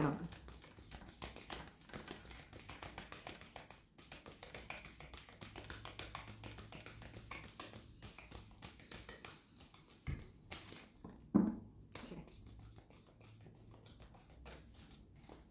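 Cards shuffle softly in a woman's hands.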